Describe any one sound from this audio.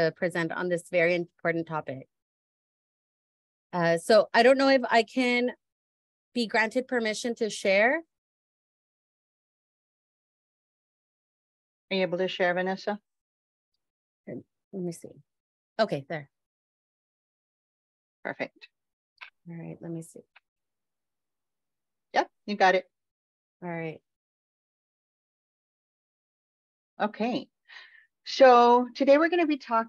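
A woman speaks calmly over an online call, in short bursts with pauses.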